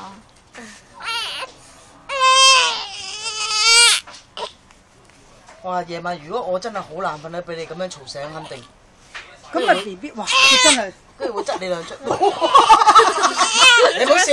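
A baby cries and wails loudly close by.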